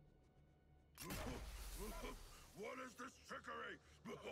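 A smoke bomb bursts with a loud hiss.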